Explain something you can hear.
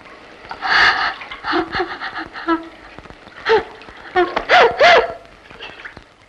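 A young woman wails and sobs loudly.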